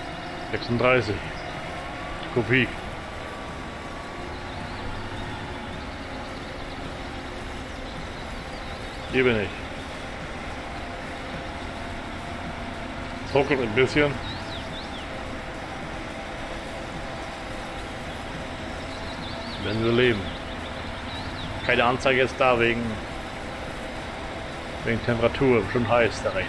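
A harvester engine drones steadily.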